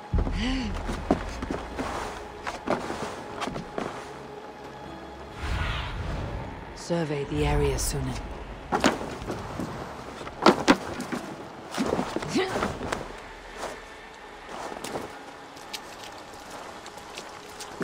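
Footsteps and hands knock and scrape on wooden boards.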